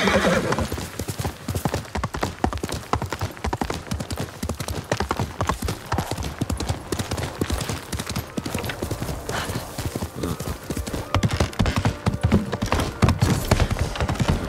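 Horse hooves clop quickly on stone and earth.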